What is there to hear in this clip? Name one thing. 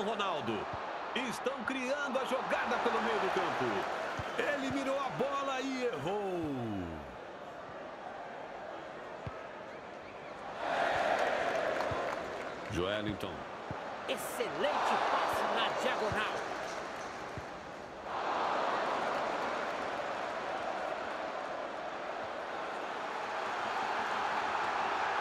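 A stadium crowd roars and cheers in waves.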